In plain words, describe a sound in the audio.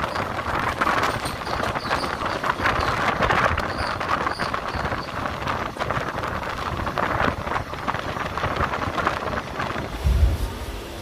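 A train rattles and rumbles along the tracks at speed.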